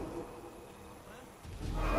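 Large wings beat with deep whooshing gusts.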